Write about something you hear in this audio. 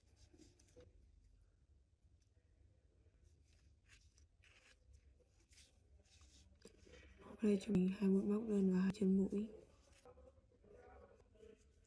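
A crochet hook and yarn rustle softly.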